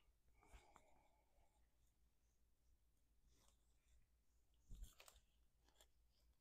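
Gloved hands pat and brush over clothing.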